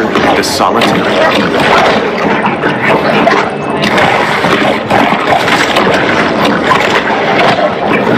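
A shark snaps its jaws on prey underwater.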